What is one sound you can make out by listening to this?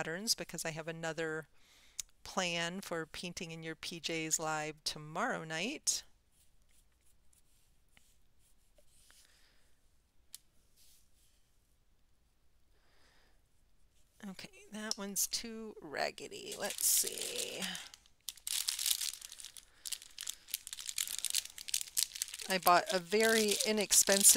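A woman talks calmly and close to a microphone.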